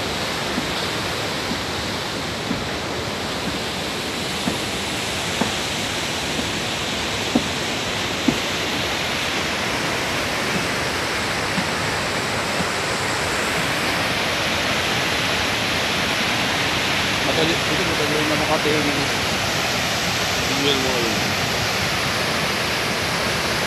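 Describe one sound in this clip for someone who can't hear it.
Water rushes and roars loudly over a dam spillway.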